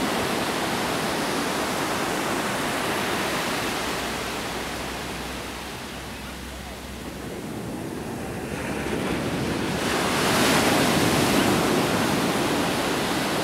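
Waves wash onto the shore, swelling and fading.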